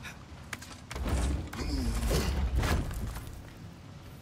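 A heavy wooden chest creaks open.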